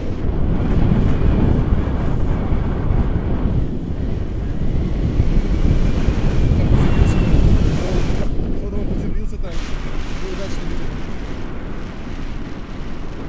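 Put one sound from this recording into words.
Strong wind roars and buffets past close by.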